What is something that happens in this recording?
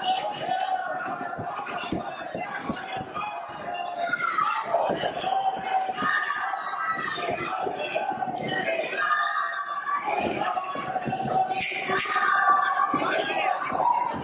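A large crowd shouts and cheers around a fight.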